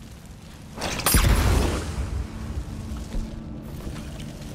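An explosion booms loudly and rumbles away.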